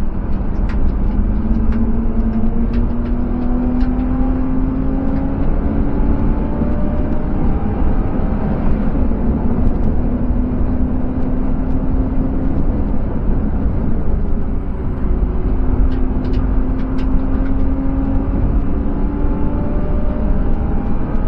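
A car engine roars steadily from inside the cabin, rising in pitch as it speeds up and dropping briefly at a gear change.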